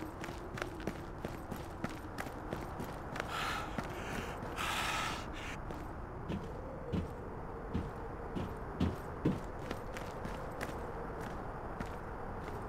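Footsteps tread quickly and steadily on a hard surface.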